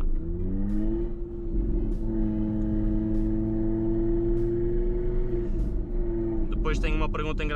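A car engine revs up and holds a steady drone close by.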